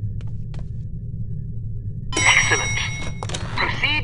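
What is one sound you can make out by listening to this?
A heavy door swings open.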